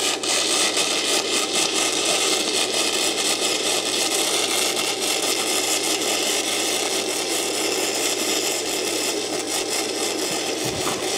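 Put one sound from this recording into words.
A welding torch crackles and sizzles steadily against metal.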